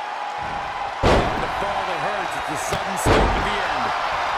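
A wrestler's body slams onto a wrestling ring mat.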